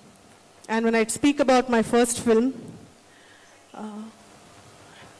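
A woman speaks emotionally into a microphone over loudspeakers.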